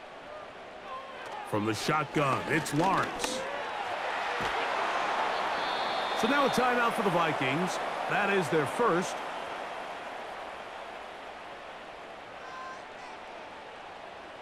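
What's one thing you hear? A large crowd cheers and roars in a stadium.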